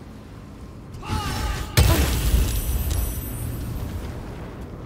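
A fiery magic blast bursts with a loud roar.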